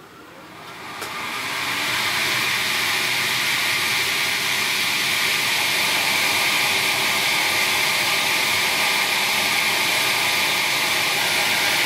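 A laser engraver hisses steadily as it burns into a surface.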